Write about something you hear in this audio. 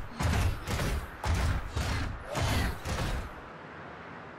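Heavy metal footsteps stomp in a quick rhythm.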